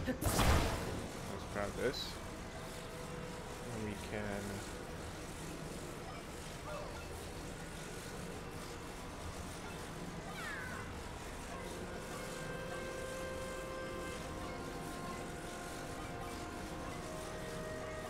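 A soft magical humming drones steadily.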